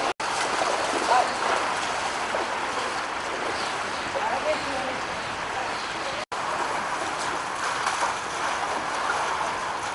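Floodwater rushes and flows steadily.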